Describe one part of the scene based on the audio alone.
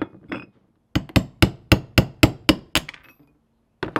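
A hammer strikes a metal punch in quick, ringing blows.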